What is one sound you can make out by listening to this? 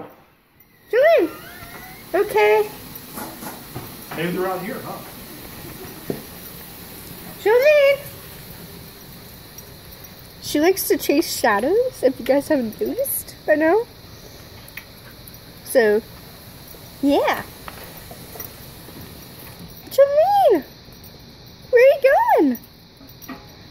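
A dog whines and yelps excitedly in short bursts.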